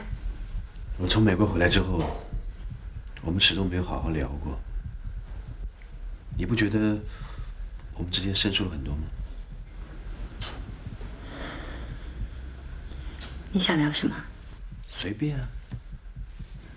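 A man speaks calmly and quietly, close by.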